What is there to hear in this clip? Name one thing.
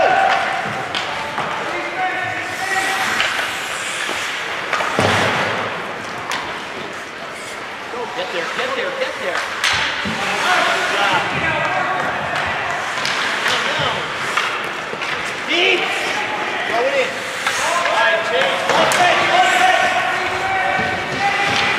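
Skates scrape across the ice in a large echoing rink.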